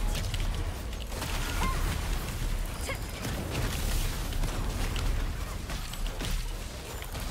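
Fiery spell effects whoosh and crackle in a video game battle.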